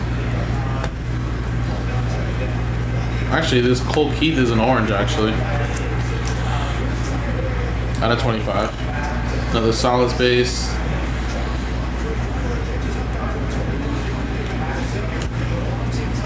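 Trading cards rustle and flick as they are shuffled by hand.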